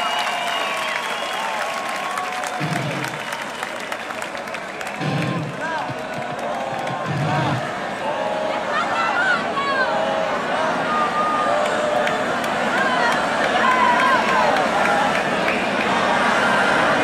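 People in a large crowd whistle shrilly.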